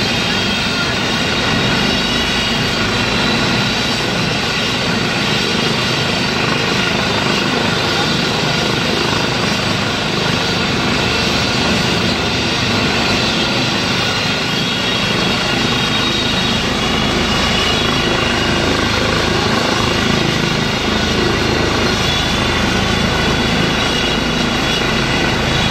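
A helicopter's engine whines and its rotor thuds steadily nearby, outdoors.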